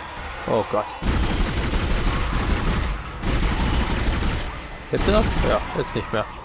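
A weapon fires in loud bursts.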